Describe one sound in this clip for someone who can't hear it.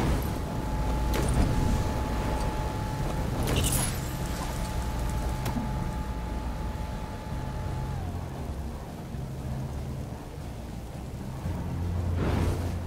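Flames roar and crackle with a low, steady rumble.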